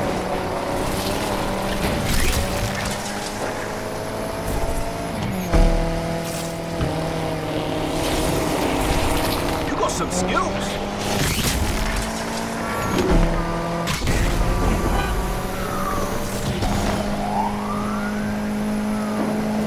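A car engine roars at high revs, shifting gears as it speeds up.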